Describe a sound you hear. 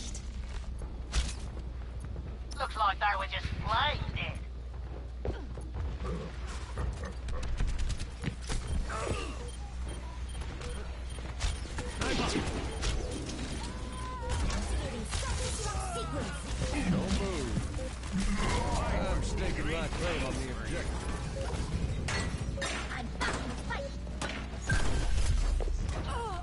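A bow twangs as arrows are fired repeatedly.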